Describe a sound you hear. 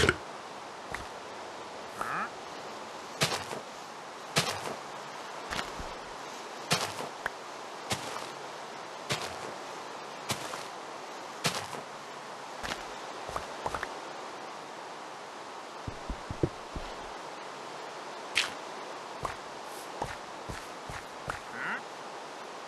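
Dirt blocks break with short crunching thuds.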